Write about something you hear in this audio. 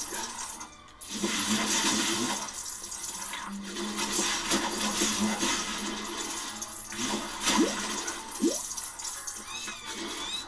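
Small coins jingle and tinkle as they are collected.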